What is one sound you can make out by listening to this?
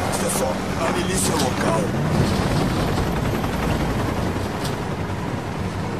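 A man speaks in a low voice, close by.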